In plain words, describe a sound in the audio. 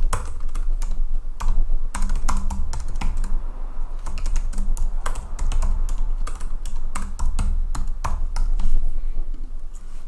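Keyboard keys clack quickly as someone types.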